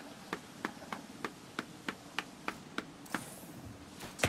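Footsteps tap at an even pace.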